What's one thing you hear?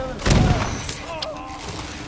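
A fiery blast bursts with a loud boom.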